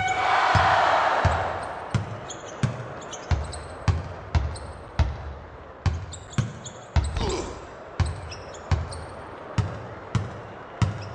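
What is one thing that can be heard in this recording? A basketball bounces steadily on a hardwood court.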